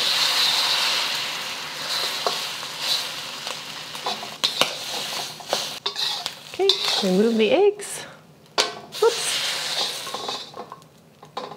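Eggs sizzle in a hot pan.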